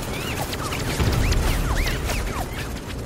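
An explosion booms and debris scatters.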